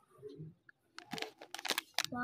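A plastic wrapper crinkles close by.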